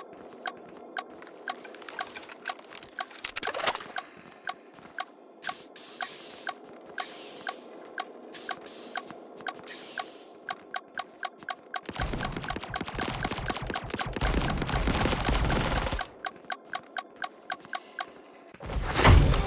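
Footsteps patter quickly and evenly.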